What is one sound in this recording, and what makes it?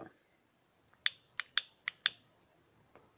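A lighter clicks several times.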